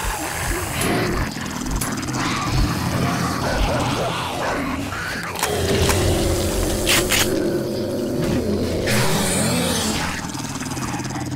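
Zombies groan and snarl in a crowd.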